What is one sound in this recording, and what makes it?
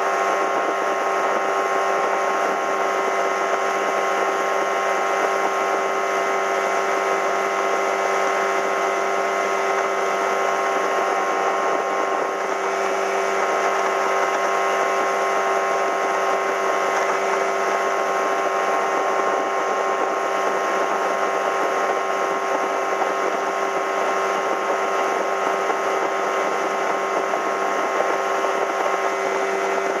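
Water rushes and splashes against a moving boat's hull.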